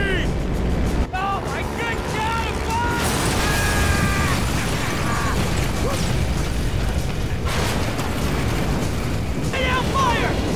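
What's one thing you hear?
Large aircraft engines roar steadily.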